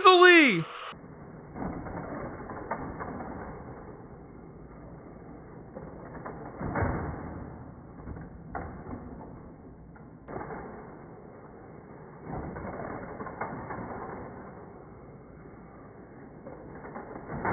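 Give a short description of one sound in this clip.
Toy cars roll and rattle along a plastic track.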